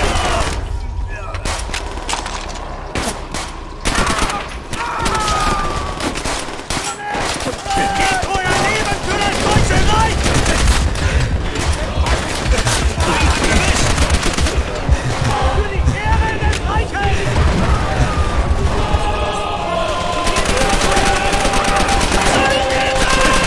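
Rifles fire.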